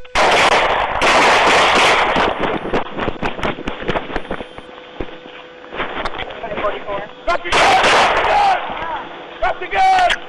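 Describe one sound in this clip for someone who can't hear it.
A man shouts commands sharply, heard through a clip-on microphone.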